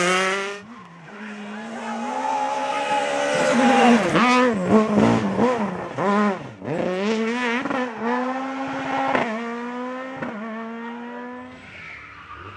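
A rally car engine revs hard, shifting gears as it races by.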